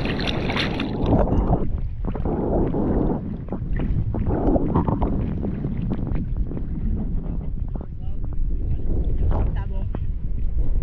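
Water laps against a surfboard.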